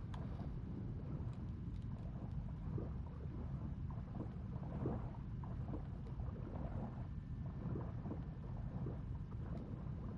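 Air bubbles gurgle and burble from a diver's breathing gear.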